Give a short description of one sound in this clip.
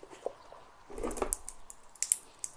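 A metal watch bracelet clinks softly.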